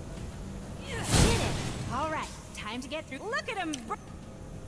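Flames burst with a loud whoosh and crackle.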